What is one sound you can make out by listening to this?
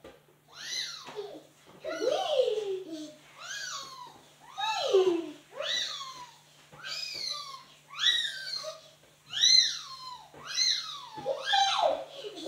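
A cloth squeaks as it rubs across a tile floor.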